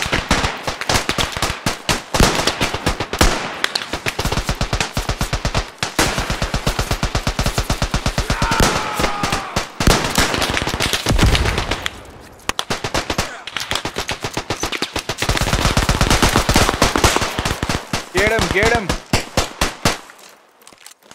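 Rapid gunfire crackles and pops in quick bursts nearby.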